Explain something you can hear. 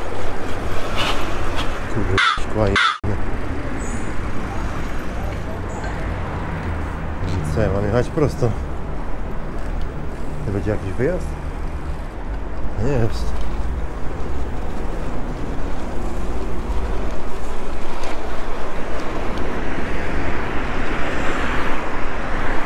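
Wind rumbles steadily past a moving bicycle.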